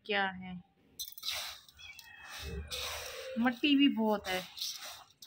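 Dry rice grains rustle and scrape in a metal dish as a hand stirs them.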